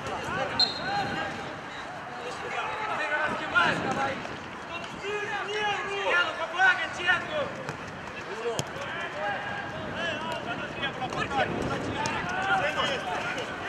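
A football thumps off a player's foot.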